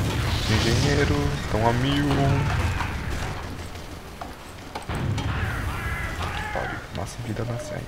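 Rockets fire and explode in bursts.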